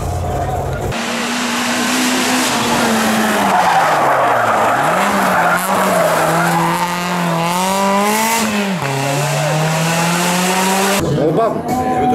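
A rally car engine roars and revs as the car speeds past.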